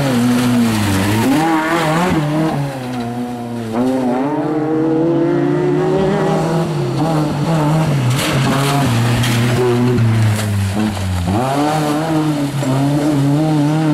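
Tyres skid and spray loose gravel.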